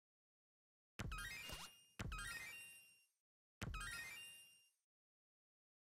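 Coins jingle and clink.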